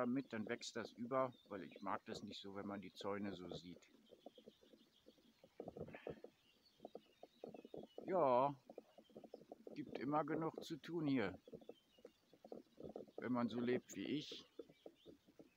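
A middle-aged man talks calmly, close to the microphone, with pauses.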